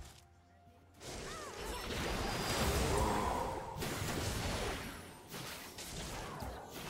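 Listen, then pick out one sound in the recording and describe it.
Game spells crackle and explode in a fast fight.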